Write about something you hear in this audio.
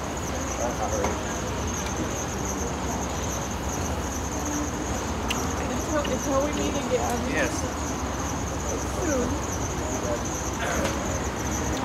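A woman speaks softly and warmly close by.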